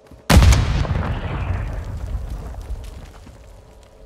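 A loud gunshot booms and echoes slowly away.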